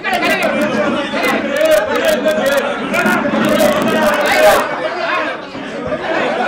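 A crowd of men shout and argue loudly over one another.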